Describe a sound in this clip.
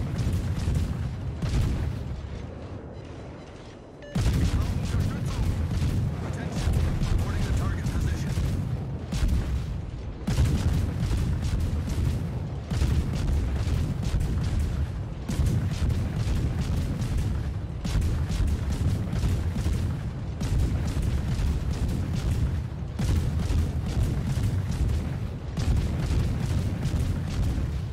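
Heavy naval guns boom and rumble in rapid salvos.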